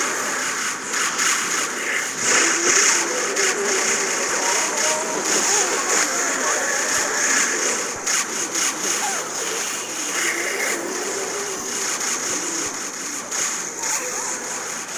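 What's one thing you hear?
Rapid cartoonish popping and blasting effects play from a game.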